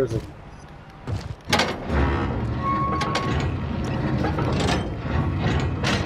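A metal bar pries and clanks against a metal gate.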